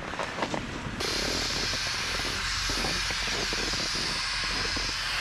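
Skis scrape steadily over snow.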